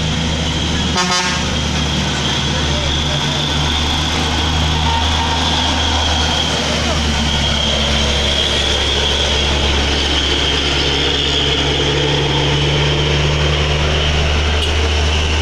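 A motorcycle engine buzzes past close by.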